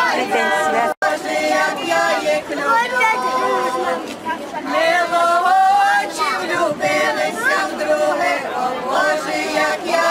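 A group of elderly women sing together.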